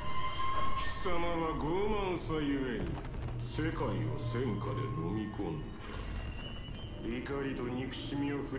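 A deep male voice speaks slowly and menacingly.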